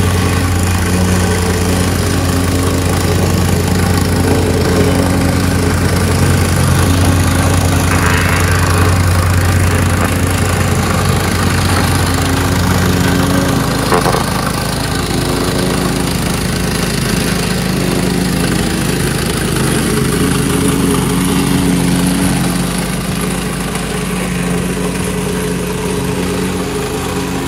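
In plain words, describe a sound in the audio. A plate compactor engine runs loudly and steadily.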